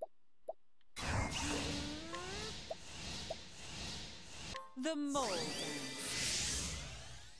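A magical spell effect swells with shimmering, whooshing tones.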